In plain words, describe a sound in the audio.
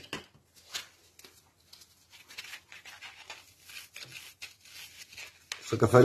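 Sandpaper rasps over wood in short, quick strokes.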